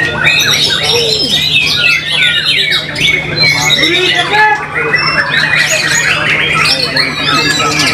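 A songbird sings a rich, varied song of quick whistles and trills.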